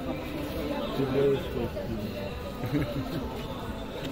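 An elderly woman speaks nearby with animation.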